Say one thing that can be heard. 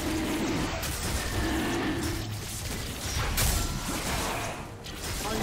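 A large beast growls and roars.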